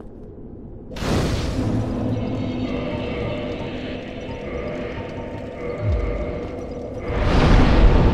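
A fire flares up with a roar and keeps crackling.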